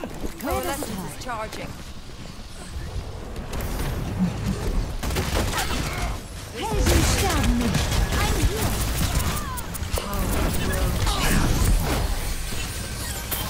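A video game's energy beams crackle and hum.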